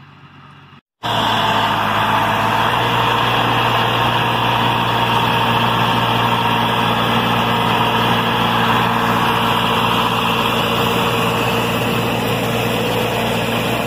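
A tractor engine rumbles loudly and steadily close by.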